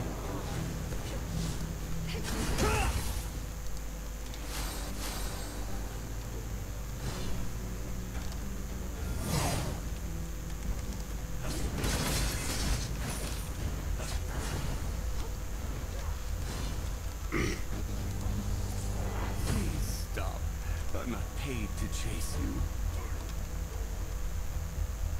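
Magic blasts whoosh and burst in short bursts during a fight.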